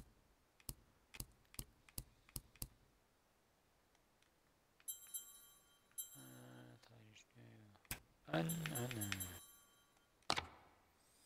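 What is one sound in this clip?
Game menu clicks tick sharply, one after another.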